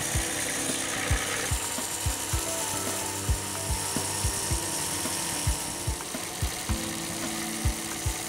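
A band saw whirs steadily as it cuts through metal.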